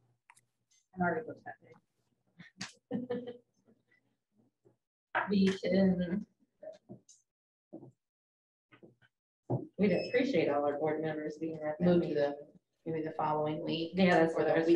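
A woman speaks calmly into a microphone, pausing now and then.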